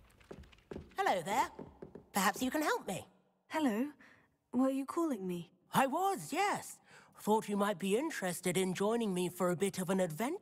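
A young man speaks calmly and cheerfully.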